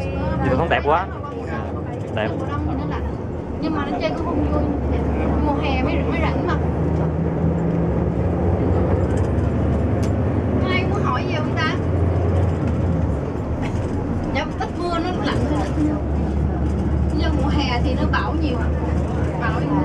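A bus engine hums steadily and rumbles over the road.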